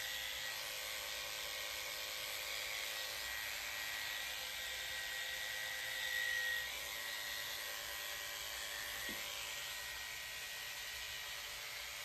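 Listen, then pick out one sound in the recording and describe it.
Electric clippers buzz while trimming a puppy's paw.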